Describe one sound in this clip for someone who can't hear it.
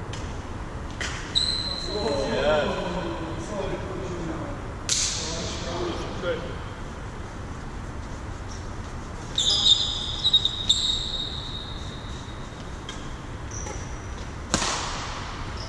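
Shuttlecocks are struck sharply with rackets, echoing in a large hall.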